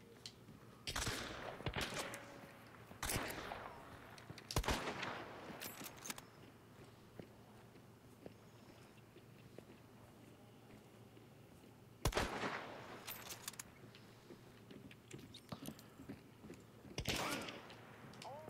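Loud gunshots ring out and echo outdoors.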